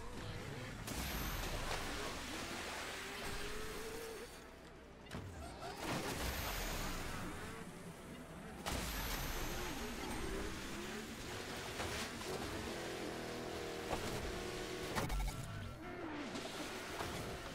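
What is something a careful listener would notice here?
Water splashes and sprays under speeding wheels.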